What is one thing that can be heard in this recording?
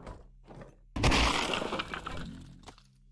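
Small objects clatter and scatter onto a wooden floor.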